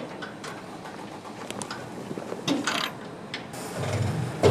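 Metal parts clink and clatter as a fitting is fastened by hand.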